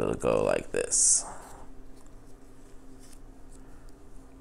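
Trading cards rustle and tap softly as a hand picks them up.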